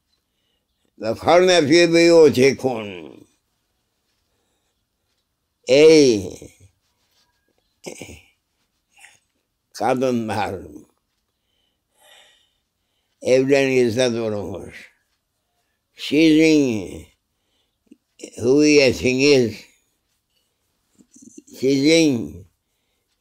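An elderly man speaks slowly in short phrases with long pauses, close to a microphone.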